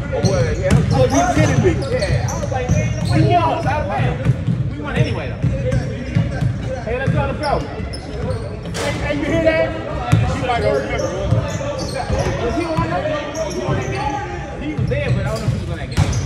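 Men talk and call out across an echoing gym.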